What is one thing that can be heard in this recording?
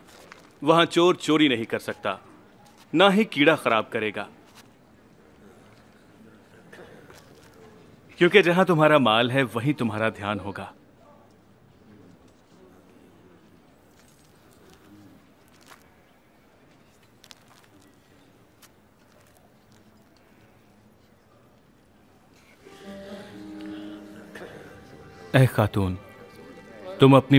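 A man speaks calmly and clearly nearby.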